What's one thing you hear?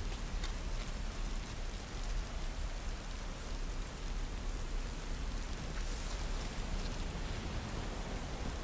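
Heavy rain pours steadily outdoors.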